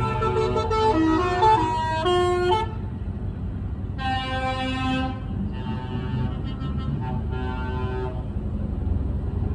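Heavy truck engines rumble loudly as the trucks drive past close by.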